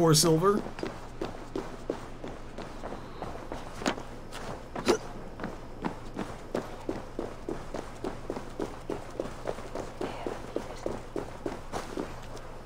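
Footsteps tread steadily.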